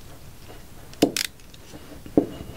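Small plastic parts click together in a man's hands.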